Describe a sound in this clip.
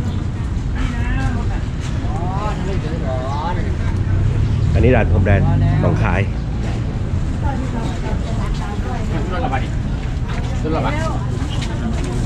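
A man talks nearby.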